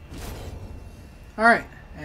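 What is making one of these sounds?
A sword slashes with a sharp swish.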